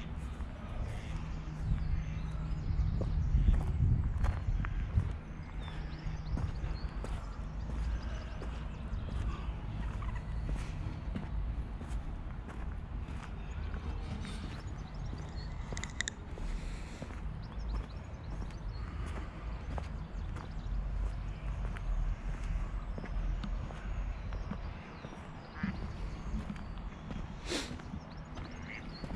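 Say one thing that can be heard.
Footsteps crunch on a cobbled path.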